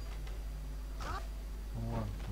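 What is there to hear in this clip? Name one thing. A heavy punch lands with a dull thud.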